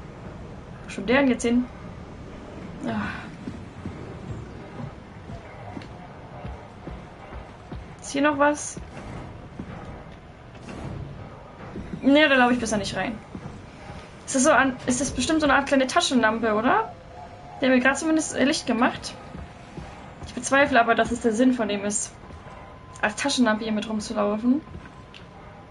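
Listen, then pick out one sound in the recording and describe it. A young woman talks into a microphone in short bursts.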